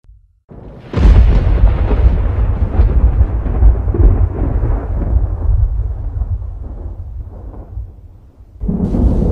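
Thunder rumbles deeply and slowly fades.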